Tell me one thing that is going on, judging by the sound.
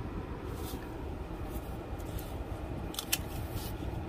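A sheet of paper rustles and slides.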